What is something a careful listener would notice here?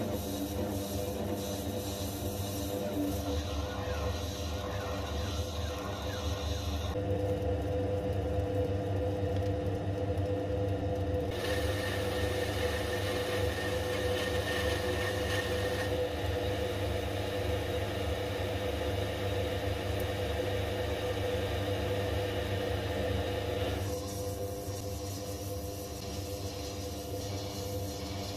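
A lathe motor hums steadily as the spindle spins.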